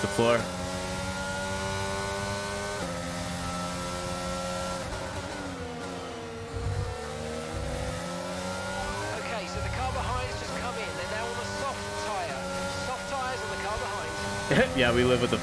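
A racing car engine whines at high revs.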